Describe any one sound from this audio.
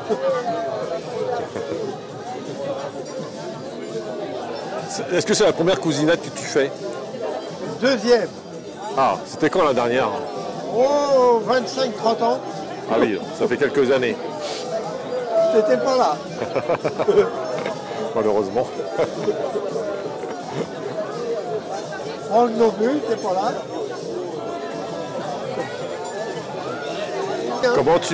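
A crowd of people chatter in the background of a room.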